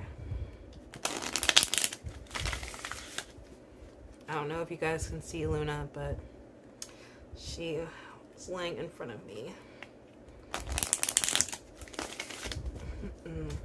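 Playing cards riffle and shuffle close by.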